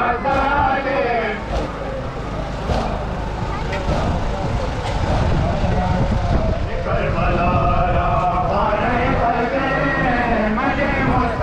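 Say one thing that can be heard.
A large crowd murmurs and bustles outdoors.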